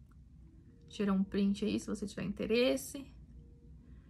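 A young woman speaks close to the microphone, with animation.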